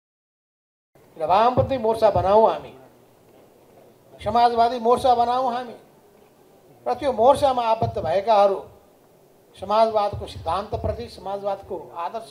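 An elderly man speaks steadily into a microphone, in short bursts with pauses.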